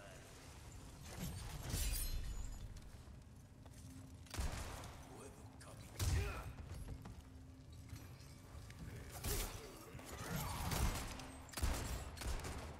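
Gunshots bang sharply.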